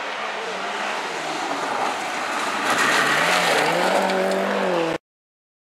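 A car engine roars and revs hard as it approaches at speed.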